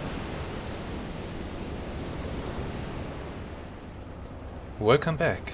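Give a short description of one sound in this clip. Rough sea waves surge and crash in a steady roar.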